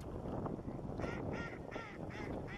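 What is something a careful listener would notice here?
A swan gives a few short nasal honks close by.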